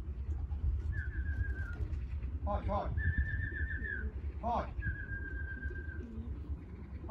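A bird chirps loudly nearby in short, repeated calls.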